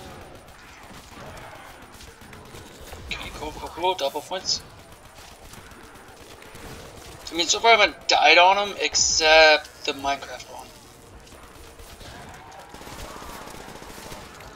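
A gun fires rapid bursts of shots.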